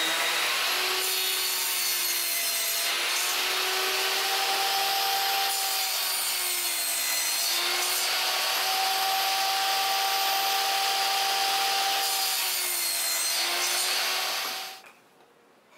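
A table saw whines steadily as it cuts wood.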